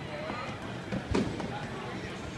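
A basketball thuds against a rim and backboard in a large echoing hall.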